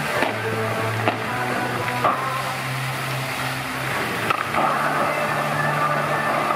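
Water from a fountain sprays and splashes steadily.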